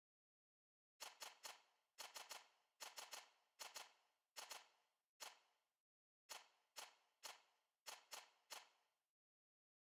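Short soft menu clicks sound in quick succession.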